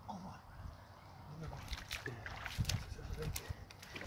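Water splashes as a man wades in shallow water and lifts a net.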